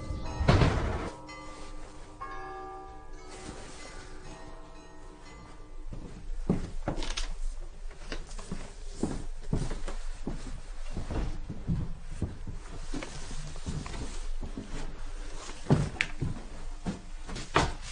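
A woman shakes out and folds a quilt with a soft rustle.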